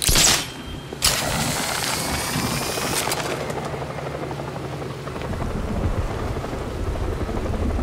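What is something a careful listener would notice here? Wind rushes loudly past during a glide.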